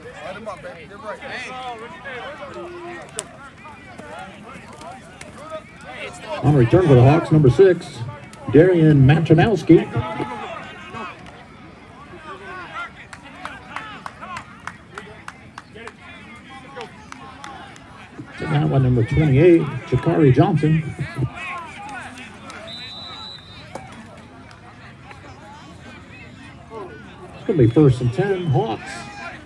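Players and spectators shout and chatter across an open outdoor field.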